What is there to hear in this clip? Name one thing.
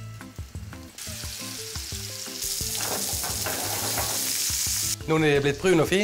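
Meatballs sizzle in a hot pan.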